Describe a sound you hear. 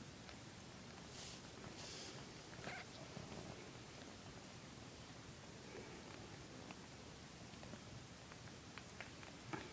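A cat licks its fur with soft wet clicks.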